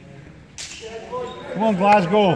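Young men shout during play in an echoing hall.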